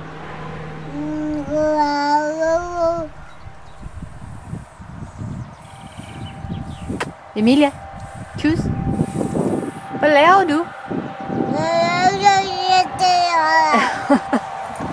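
A toddler babbles and talks in a high voice close by.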